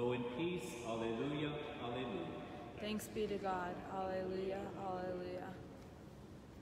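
A man chants in a steady, sung voice through a microphone.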